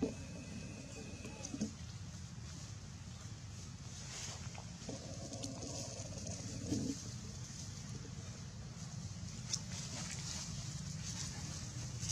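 A baby monkey suckles softly.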